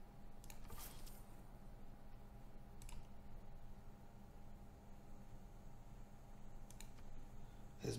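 Soft interface clicks sound now and then.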